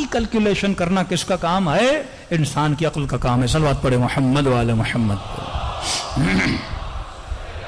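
A man speaks passionately into a microphone, his voice amplified in a large room.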